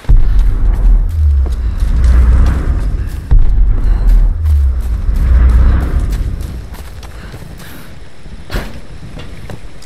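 Footsteps run over forest ground.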